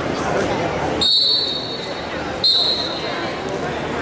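A referee blows a whistle twice in short blasts.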